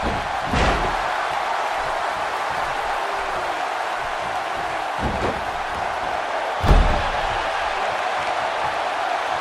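A large crowd roars steadily in a big arena.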